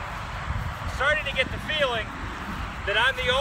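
A man speaks with animation, close by, outdoors.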